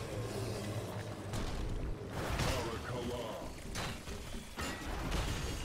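Video game combat sound effects whoosh and crackle.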